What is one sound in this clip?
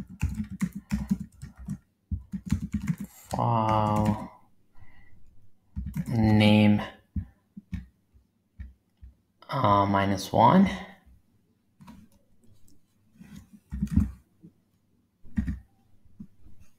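Keyboard keys click rapidly as someone types.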